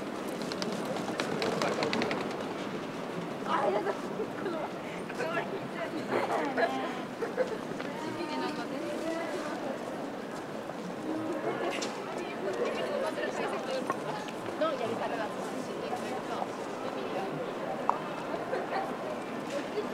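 A busy crowd murmurs and chatters on a street outdoors.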